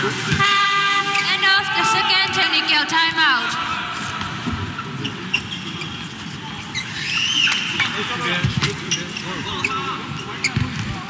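Spectators chatter and cheer in a large echoing hall.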